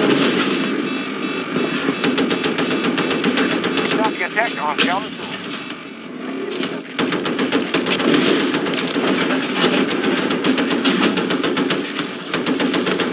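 Gunfire crackles rapidly nearby.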